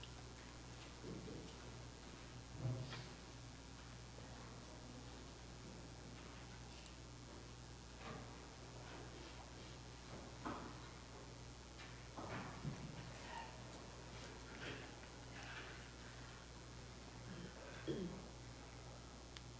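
An elderly woman speaks slowly and softly into a microphone, with long pauses, in an echoing room.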